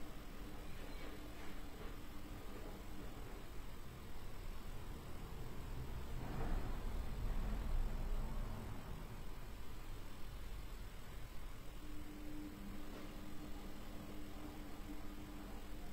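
A young woman hums a low, steady note close by.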